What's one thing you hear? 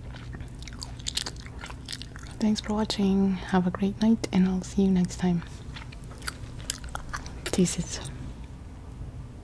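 Soft mouth clicks come close to a microphone.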